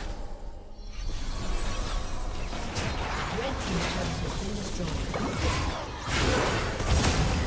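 Video game spell effects crackle and blast during a battle.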